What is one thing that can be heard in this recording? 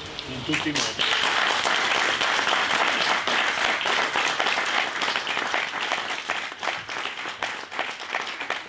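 Many people clap in steady applause.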